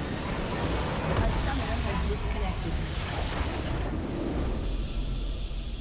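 A video game structure explodes with a deep rumbling blast.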